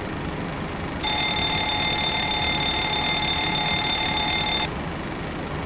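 A cockpit warning alarm sounds a steady high tone, then stops.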